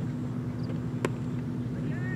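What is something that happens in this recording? A cricket bat strikes a leather ball outdoors.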